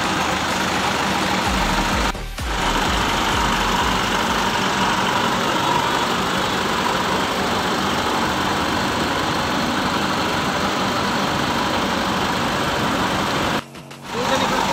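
A bus engine idles with a steady rumble.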